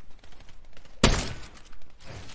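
A gunshot cracks loudly once.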